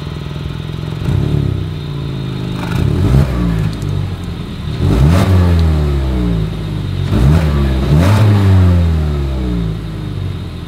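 A car engine revs up sharply several times and falls back.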